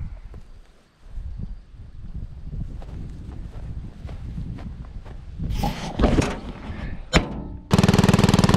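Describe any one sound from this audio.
A man talks casually close by, outdoors.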